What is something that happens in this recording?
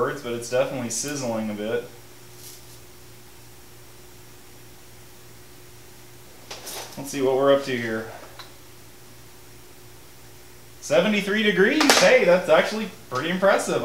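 A man talks calmly nearby, pausing between phrases.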